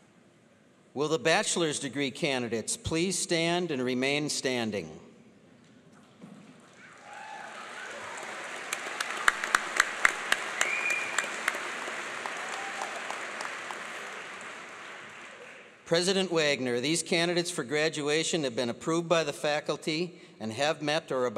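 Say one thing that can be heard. A middle-aged man speaks calmly through a microphone, echoing in a large hall.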